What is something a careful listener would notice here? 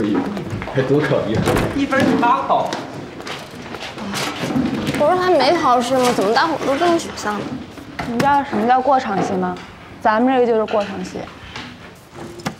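Two young women talk with animation, close by.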